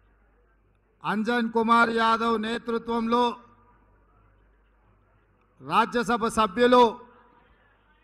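A man speaks loudly and forcefully into a microphone over loudspeakers, in bursts with pauses.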